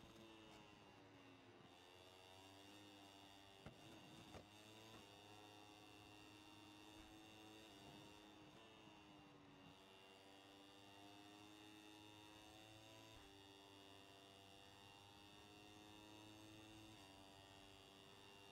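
A racing motorcycle engine screams at high revs, rising through the gears and dropping as it slows for corners.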